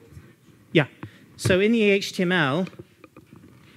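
A man speaks loudly through a microphone in a large room.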